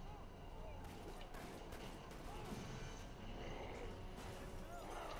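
A police siren wails in short rising and falling bursts.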